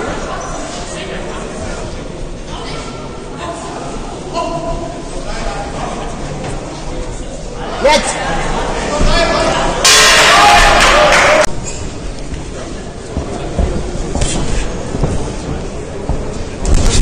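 A crowd of spectators murmurs and calls out in a large echoing hall.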